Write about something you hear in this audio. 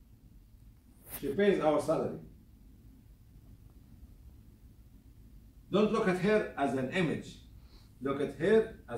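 An elderly man speaks nearby in short bursts with long pauses.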